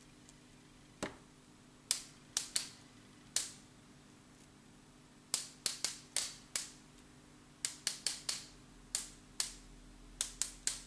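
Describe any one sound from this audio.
A small bottle taps sharply against paper, again and again.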